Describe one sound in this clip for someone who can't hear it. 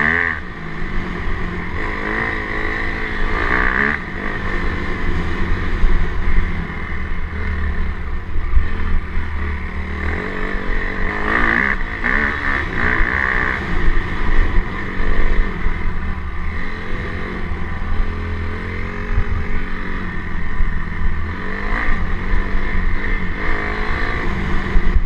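Tyres crunch over a rough gravel track.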